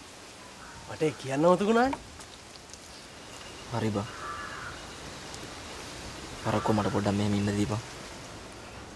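A second young man answers calmly close by.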